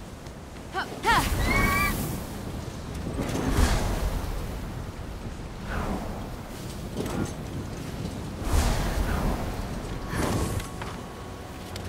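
Large wings whoosh and flap in rushing bursts.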